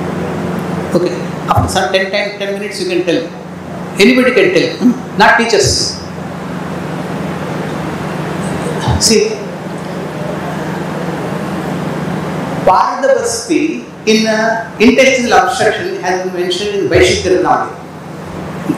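An elderly man lectures calmly through a microphone in an echoing room.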